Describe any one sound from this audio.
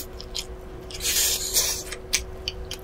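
A woman slurps from a spoon, close to a microphone.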